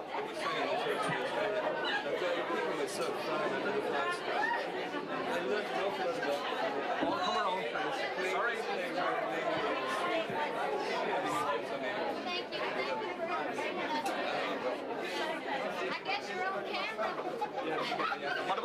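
A woman talks and laughs close by.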